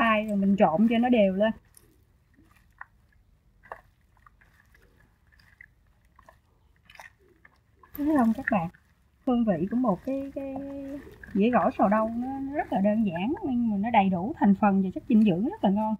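Hands toss and squeeze wet salad leaves with soft rustling and squelching.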